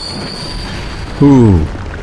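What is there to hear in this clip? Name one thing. A sword strikes a skeleton with a heavy thud.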